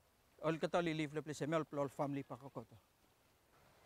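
A man speaks with animation close by, outdoors.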